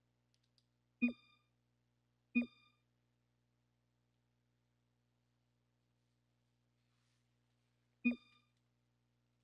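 A bright game chime rings as a chat message comes in.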